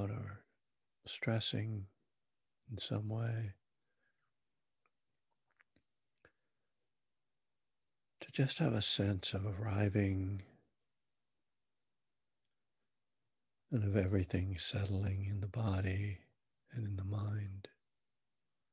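A middle-aged man speaks calmly and up close into a microphone, in short bursts with pauses.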